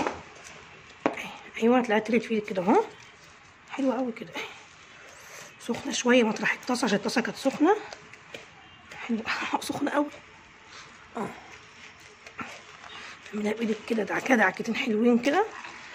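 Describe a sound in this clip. Hands squish and mix a crumbly mixture.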